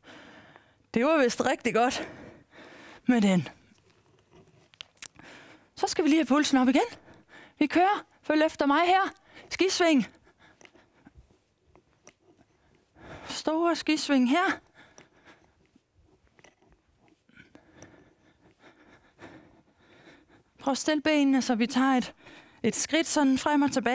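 A woman speaks with animation through a close microphone, in short bursts.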